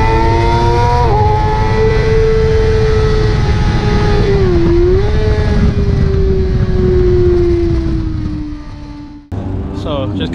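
A motorcycle engine roars loudly at high revs, its pitch rising and falling with the gears.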